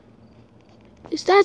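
A young boy exclaims loudly, close to a microphone.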